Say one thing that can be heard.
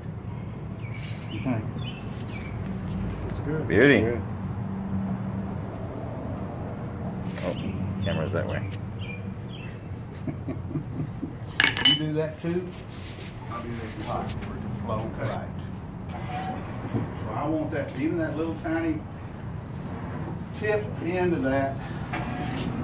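An elderly man talks calmly nearby.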